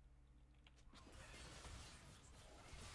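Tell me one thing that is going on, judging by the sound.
Game spells crackle and burst during a fight.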